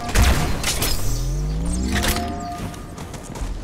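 A deep explosion booms and rumbles.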